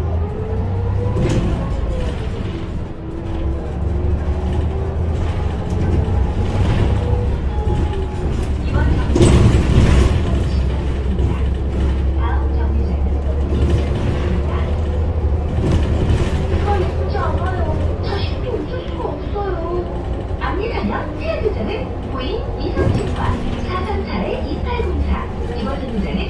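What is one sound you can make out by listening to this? A bus engine hums low and steady while driving.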